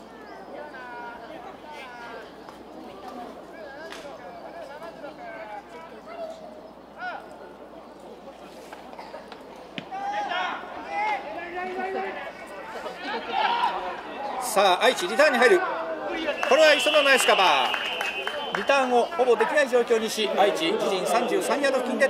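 Young men on a sideline shout and cheer, growing louder and more excited outdoors.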